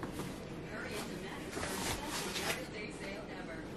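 A folding camping chair's fabric and frame rustle as a woman gets up from it.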